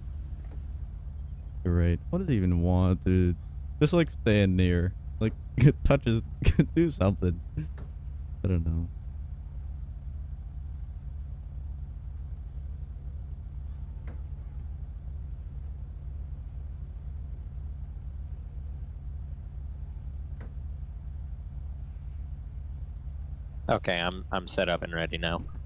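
A sports car engine idles with a low, steady rumble.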